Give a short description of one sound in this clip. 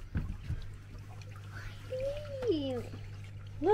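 Air bubbles stream and gurgle softly in water.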